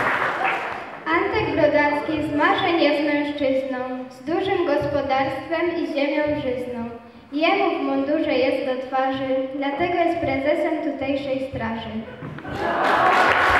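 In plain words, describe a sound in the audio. A group of children sing together through loudspeakers in a hall.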